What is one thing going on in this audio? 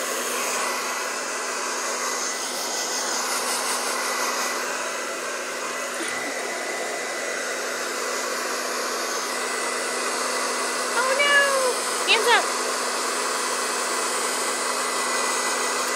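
A hair dryer blows with a steady whooshing roar.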